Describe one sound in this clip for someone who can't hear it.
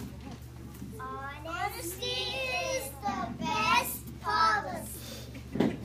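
A young girl speaks up, reading aloud.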